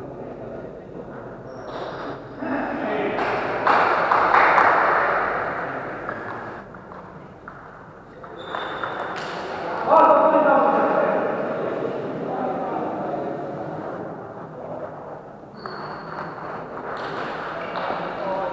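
A table tennis ball clicks back and forth off paddles and a table in a large echoing hall.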